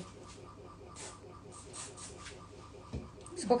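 A spray can hisses in short bursts.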